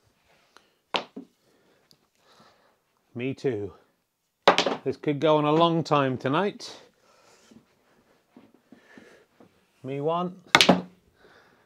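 A cue strikes a ball with a sharp click.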